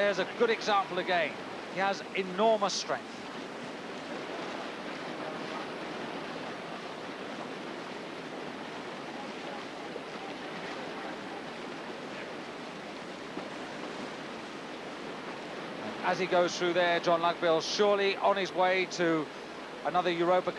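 White water rushes and churns steadily.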